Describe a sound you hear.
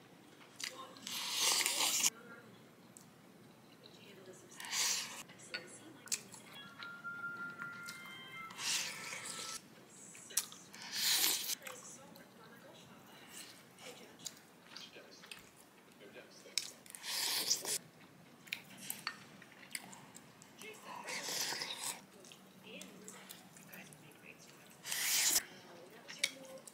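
A person slurps soup loudly in bursts.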